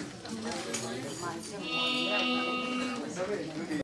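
An electric guitar plays a sustained chord.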